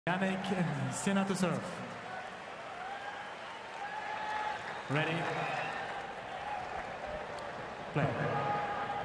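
A large crowd murmurs in an open stadium.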